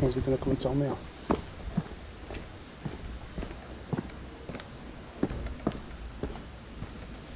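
Footsteps scuff down stone steps outdoors.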